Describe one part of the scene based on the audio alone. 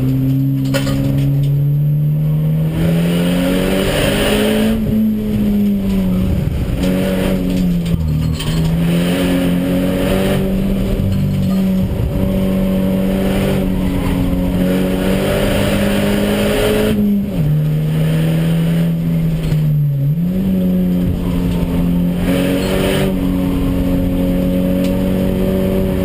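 Tyres hum on the track surface.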